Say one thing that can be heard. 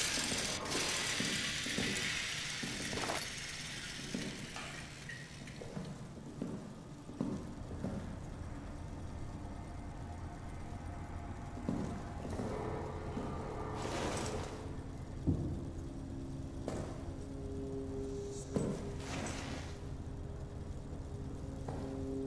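Slow footsteps thud on a hard floor.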